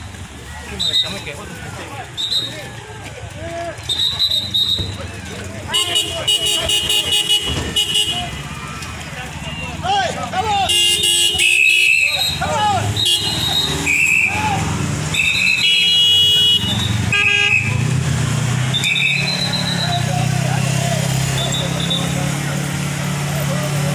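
A crowd of people talks and shouts outdoors.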